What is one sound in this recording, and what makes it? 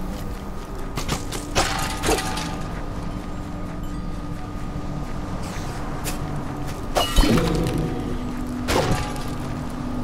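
Weapon hits land with sharp thuds and bursts of magic.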